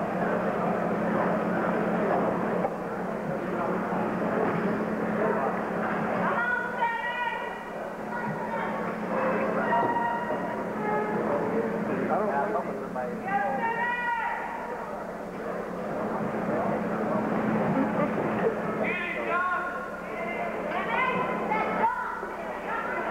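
A crowd of spectators cheers and shouts around a boxing ring.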